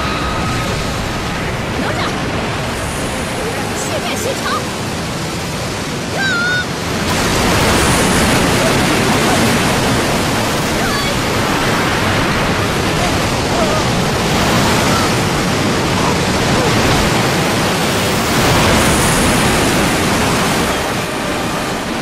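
Huge waves roar and crash.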